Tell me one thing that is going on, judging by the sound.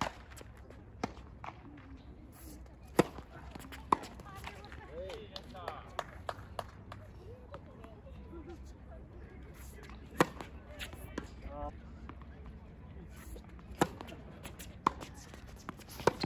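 Tennis rackets strike a ball with sharp pops.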